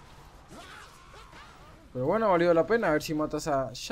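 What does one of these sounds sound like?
Fighting sound effects from a video game clash and whoosh.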